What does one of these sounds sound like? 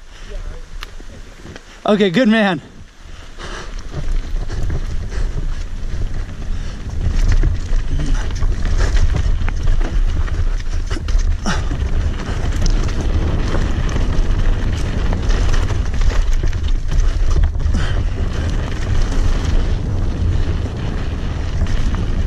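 Wind buffets a microphone, rumbling loudly.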